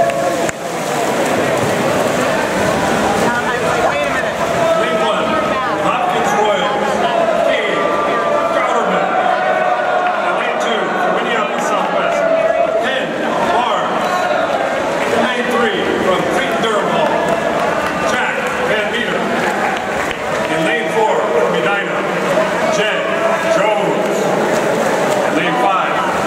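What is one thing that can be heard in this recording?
Swimmers splash through the water.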